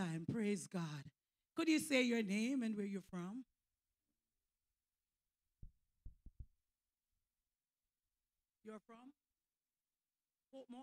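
A woman speaks with animation into a microphone, heard over loudspeakers, with pauses.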